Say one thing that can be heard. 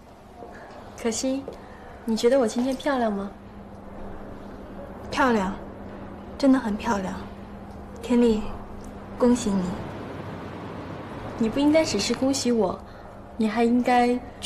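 A young woman speaks cheerfully up close.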